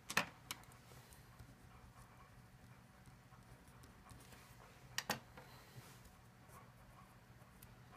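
A pen scratches on paper.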